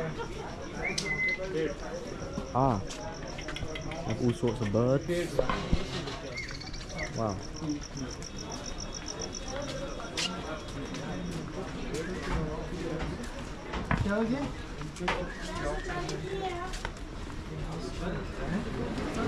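A crowd murmurs all around.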